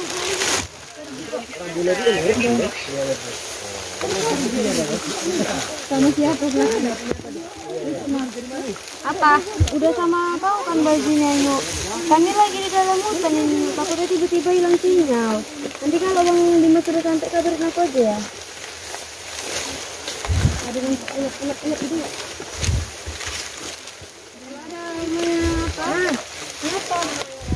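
Young women chatter and call out nearby, outdoors.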